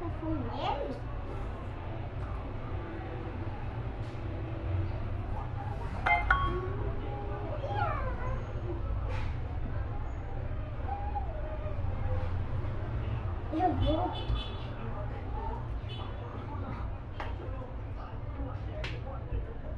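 A small dog yaps.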